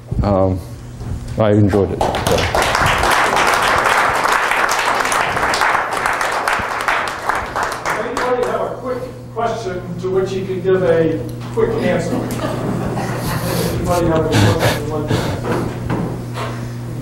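An elderly man speaks calmly through a microphone in an echoing room.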